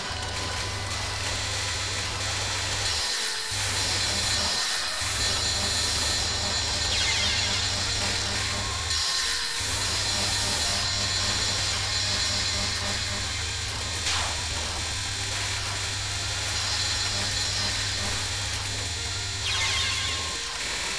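Rapid shooting sound effects rattle constantly.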